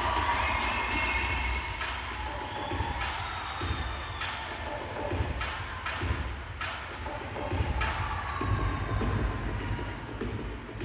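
Loud music with a heavy beat plays over speakers in a large hall.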